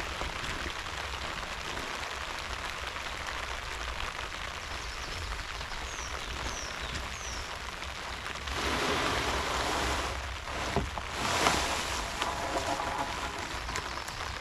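A plastic tarp rustles and crinkles as it is handled.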